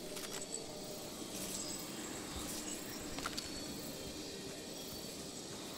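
Sparkling magical chimes shimmer nearby.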